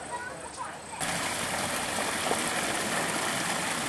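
A small waterfall splashes down rocks into a pool.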